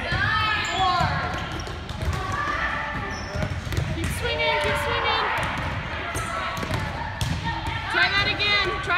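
Boys shout and call out to each other nearby in a large echoing hall.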